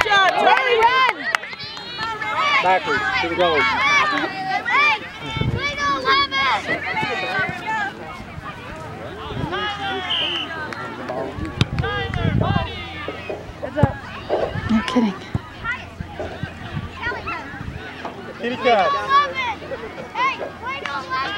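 Young children shout while running.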